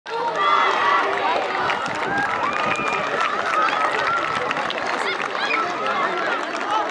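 A crowd of young spectators shouts and cheers outdoors.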